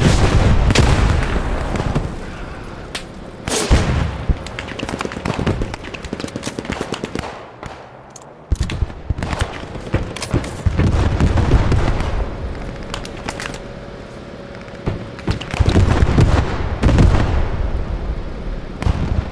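Gunshots crack repeatedly, near and far.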